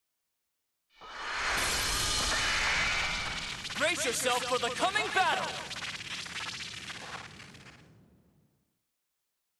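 A loud whooshing burst rings out and slowly fades.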